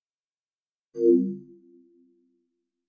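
A short, low electronic chime rings out and fades quickly.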